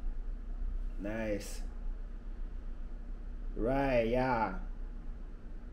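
A young man speaks briefly and calmly close by.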